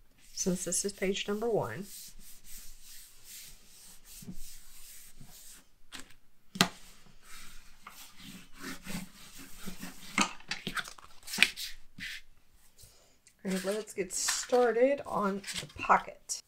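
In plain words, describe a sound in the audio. Paper slides and rustles against a table.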